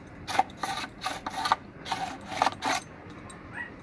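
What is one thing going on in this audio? A whetstone scrapes rhythmically along a metal blade.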